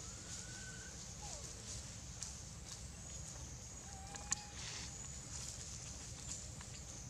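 Small monkeys patter over dry fallen leaves, which crackle underfoot.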